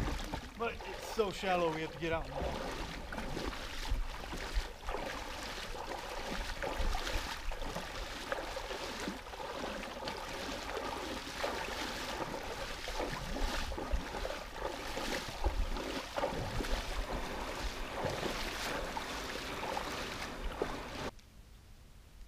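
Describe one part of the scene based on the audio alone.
Water ripples and laps against a towed kayak.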